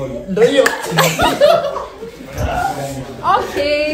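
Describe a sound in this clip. A group of young people laugh and chatter.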